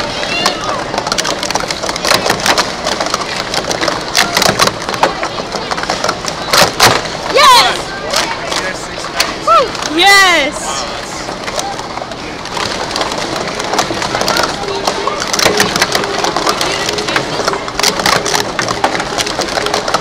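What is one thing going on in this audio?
Plastic cups clack and rattle quickly as they are stacked and knocked down.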